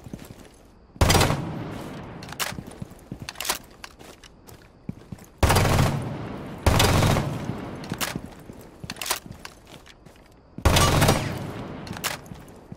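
Gunshots fire in short bursts, each followed by a ringing echo.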